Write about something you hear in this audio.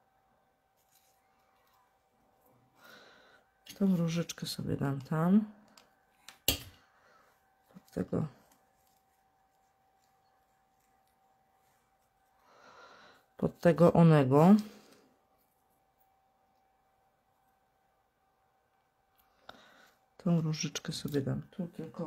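Paper rustles softly as hands handle a card.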